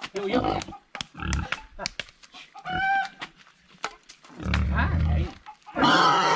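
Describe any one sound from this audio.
A pig grunts deeply.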